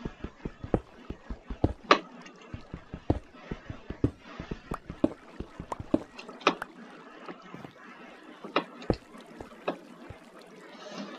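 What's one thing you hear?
A pickaxe taps rapidly against stone in a video game.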